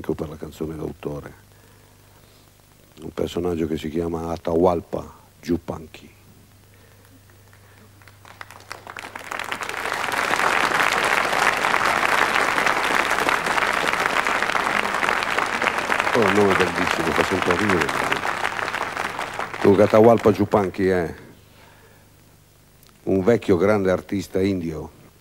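A man talks into a microphone in a lively way.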